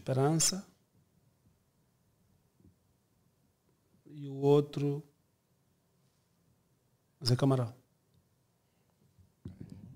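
A middle-aged man speaks calmly and close into a microphone, in short bursts with pauses.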